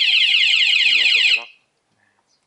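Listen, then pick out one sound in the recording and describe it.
An alarm remote beeps rapidly.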